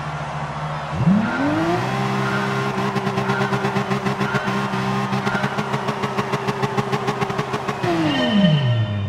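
A racing car engine revs hard and holds a high, buzzing pitch.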